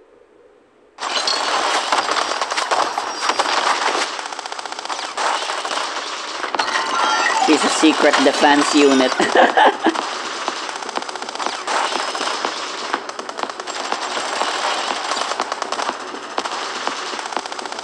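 Rapid gunfire rattles loudly without a break.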